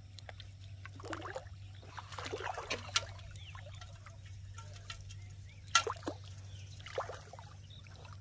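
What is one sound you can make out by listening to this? Water trickles and splashes into a pot.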